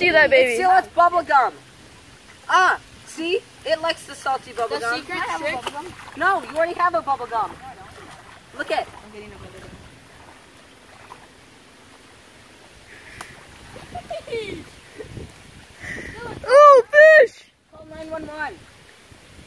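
A teenage boy talks excitedly close by.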